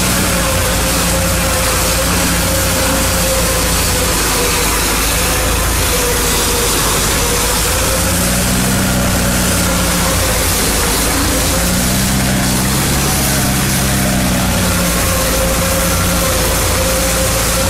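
Water hisses loudly from fire hoses.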